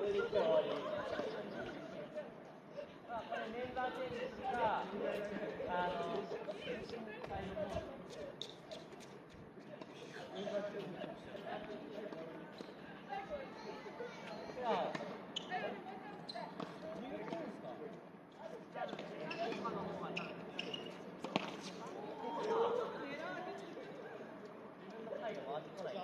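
Tennis balls are struck with rackets, with sharp pops.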